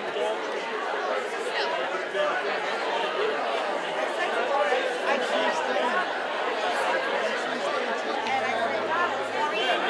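A young woman speaks into a microphone, heard through loudspeakers in a large room.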